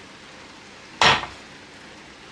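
A metal pan is set down on a table with a clunk.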